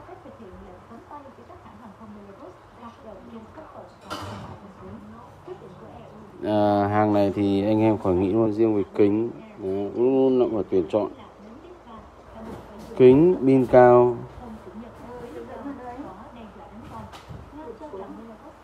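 A hand handles metal tablets with soft knocks and rubbing.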